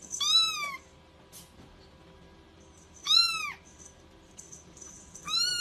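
A kitten meows in short, high cries close by.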